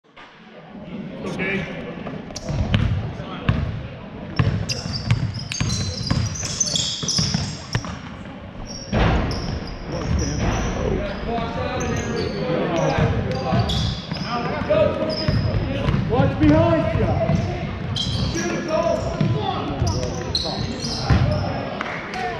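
A crowd of spectators murmurs and calls out, echoing in a large hall.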